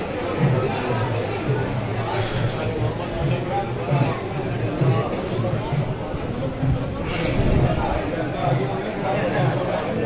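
A crowd of men talk and murmur close by in a busy, echoing hall.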